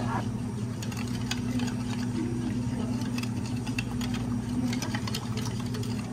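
A spoon stirs liquid in a cup.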